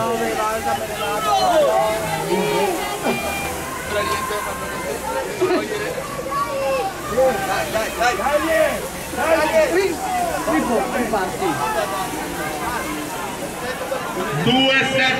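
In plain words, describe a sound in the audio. A crowd of men and women chatter and call out nearby, outdoors.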